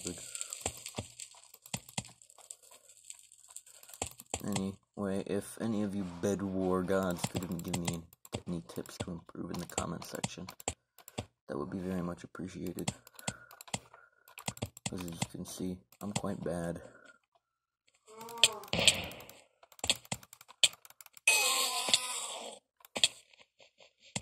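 Keyboard keys click and clatter rapidly.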